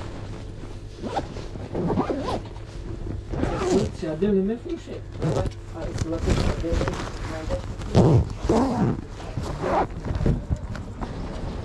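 A man talks nearby in a casual way.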